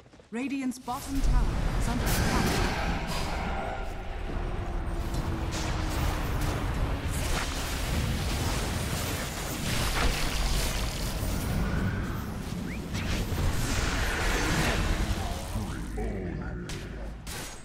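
Magic spells whoosh, crackle and boom in a fast fight.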